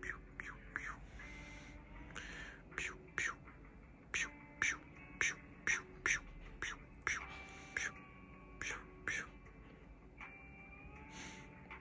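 A hand strokes a cat's fur softly.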